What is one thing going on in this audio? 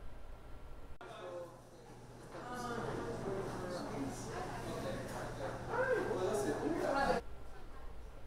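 A young man speaks calmly and conversationally, close by.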